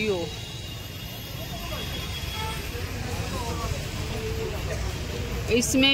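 A crowd of people chatter nearby on a busy street.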